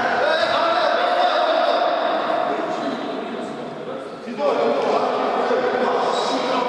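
Young men shout to each other in an echoing sports hall.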